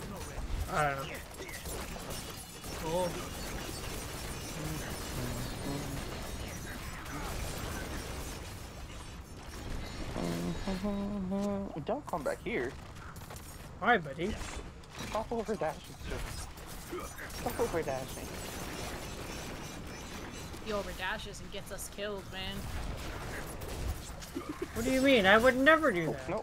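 Magic blasts and fiery bursts crackle in a fight.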